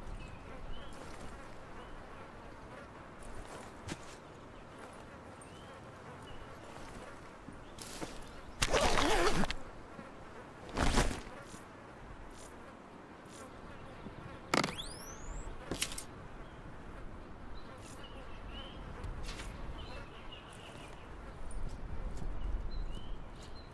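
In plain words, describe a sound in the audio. Tall grass rustles as someone crawls through it.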